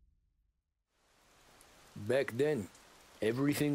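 Rain falls on pavement.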